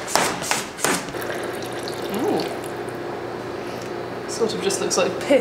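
A drink machine whirs as it pours.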